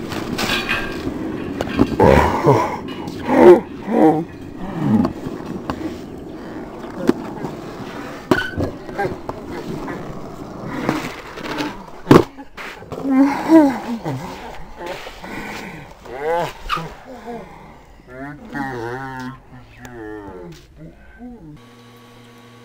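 Teenage boys talk and laugh nearby, outdoors.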